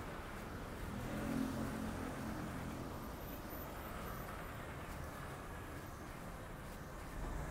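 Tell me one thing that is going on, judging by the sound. A bus engine idles and pulls away.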